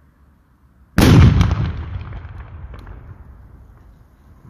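A barrel explodes with a loud boom that echoes away outdoors.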